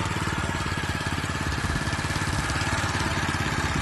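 A small single-cylinder gasoline engine runs.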